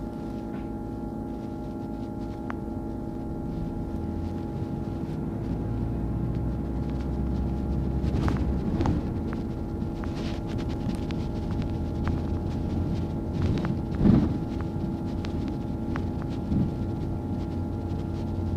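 A bus rattles and knocks as it rolls over the road.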